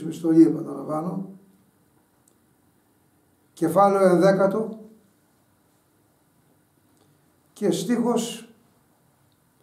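An elderly man reads aloud calmly and slowly, close to a microphone, with long pauses.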